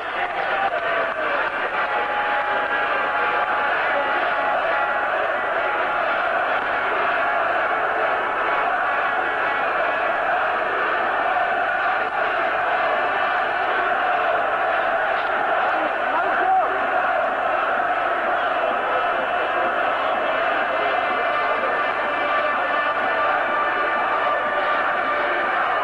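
A large stadium crowd chants and roars loudly outdoors.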